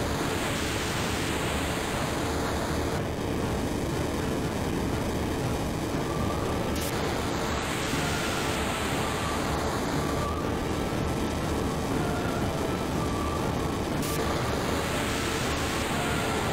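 A huge blast roars and rumbles on and on.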